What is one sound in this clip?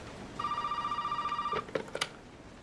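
A telephone gives a steady electronic tone.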